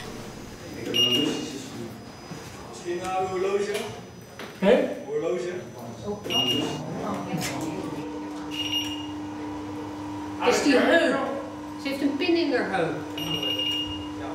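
A metal detector gate beeps each time someone walks through.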